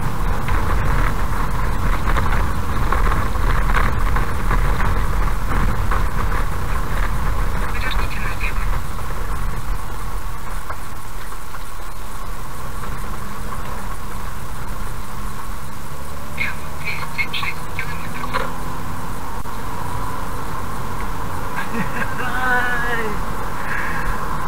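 A car engine hums, quieting as the car slows and then rising in pitch as it speeds up again.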